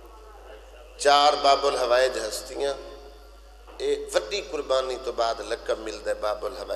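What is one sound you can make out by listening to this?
A man speaks loudly and with passion through a microphone and loudspeakers.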